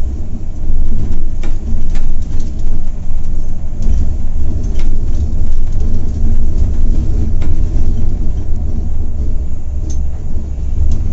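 A diesel coach engine drones from inside the cab.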